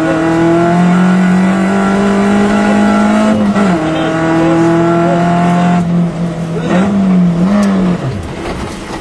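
A car engine roars at high revs, rising and falling as gears change.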